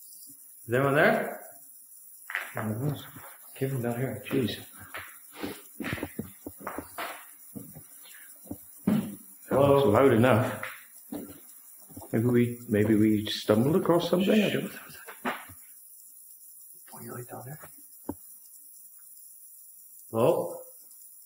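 A man talks close by in short bursts.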